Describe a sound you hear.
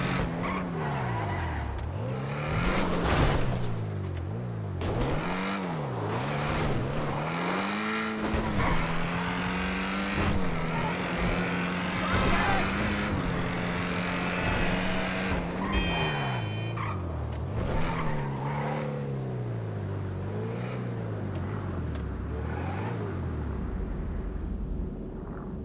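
A car engine revs hard, rising and falling as the gears shift.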